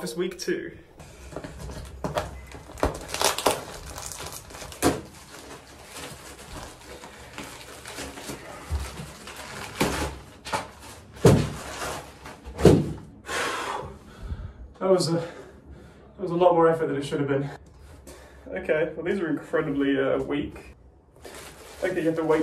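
A plastic mailing bag crinkles and rustles as it is torn open and unpacked.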